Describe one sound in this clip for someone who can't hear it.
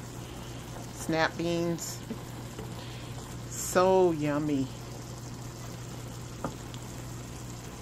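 A spatula scrapes and stirs vegetables in a pan.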